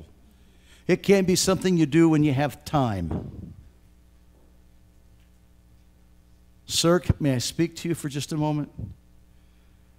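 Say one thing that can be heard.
An elderly man speaks calmly through a microphone, pausing between phrases.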